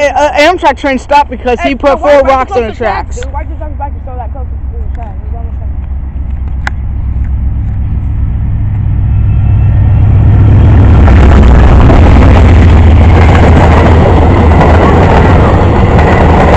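A train approaches with a deep, growing rumble and roars past close by.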